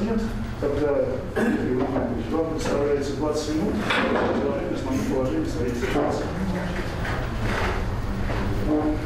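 An older man speaks calmly in an echoing room.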